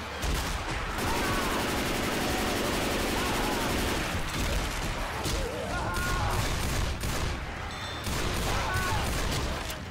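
Zombies snarl and groan up close.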